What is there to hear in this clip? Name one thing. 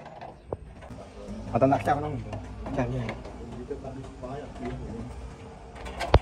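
A door handle is pressed down and its latch clicks.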